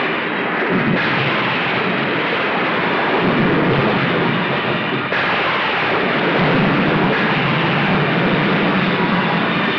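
Thunder cracks and rumbles loudly.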